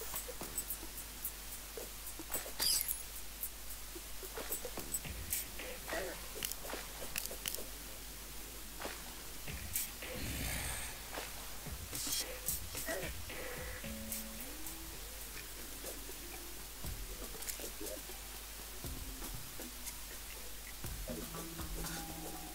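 Short video game sound effects click and pop.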